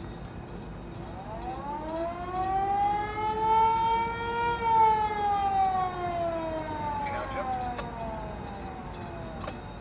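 A lift bridge's motor whines, rising in pitch and then slowly falling.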